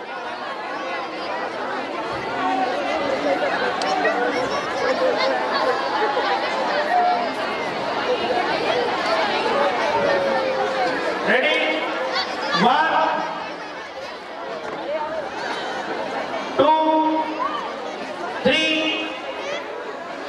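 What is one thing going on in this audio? A large crowd chatters and murmurs in the open air.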